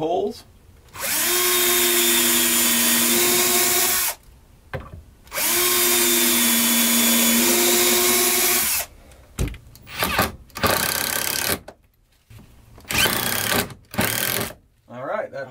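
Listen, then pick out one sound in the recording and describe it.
A cordless drill whirs loudly in short bursts.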